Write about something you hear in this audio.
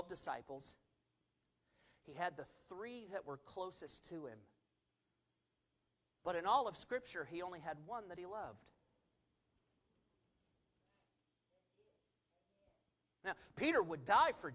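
A man speaks calmly into a microphone, with pauses, heard through loudspeakers in a large room.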